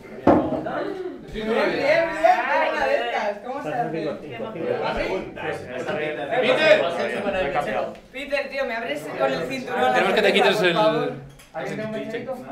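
A young man speaks cheerfully up close.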